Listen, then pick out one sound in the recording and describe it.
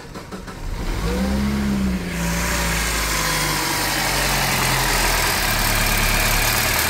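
A car engine starts and idles nearby.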